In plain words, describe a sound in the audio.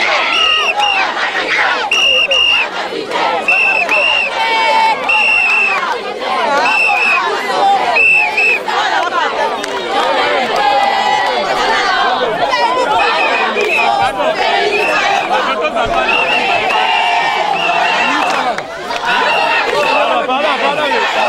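A large crowd of young people shouts and chants loudly outdoors.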